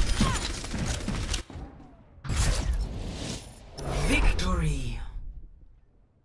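Gunfire and energy blasts crackle loudly in a video game.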